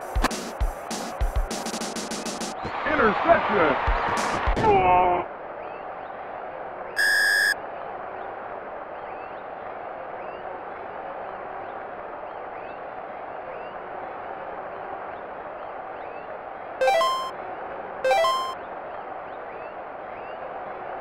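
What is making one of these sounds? A video game stadium crowd murmurs steadily.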